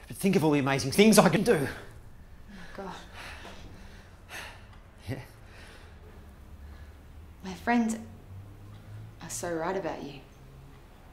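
A young woman speaks calmly and with emotion nearby.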